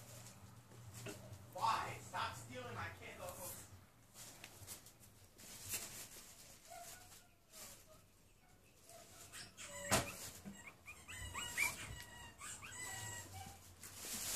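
Puppies whimper and squeal in high little cries.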